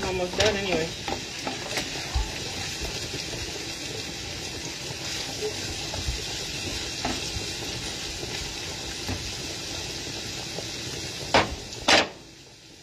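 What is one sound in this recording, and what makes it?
A wooden spoon scrapes and knocks against a frying pan.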